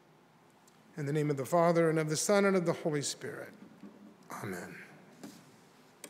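An older man sings into a microphone in a reverberant room.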